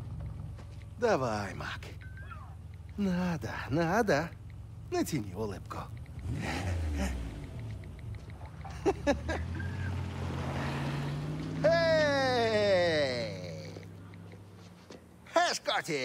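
A young man speaks calmly and clearly.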